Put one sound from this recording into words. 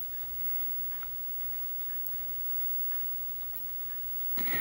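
Tweezers tick against a small plastic part.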